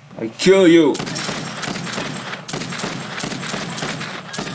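Gunshots crack rapidly in a game.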